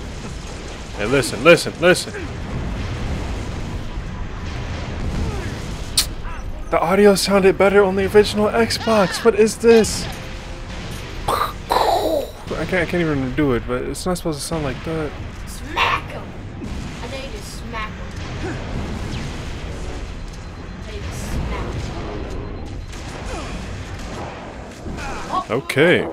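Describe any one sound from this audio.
Gunfire rings out in short, sharp bursts.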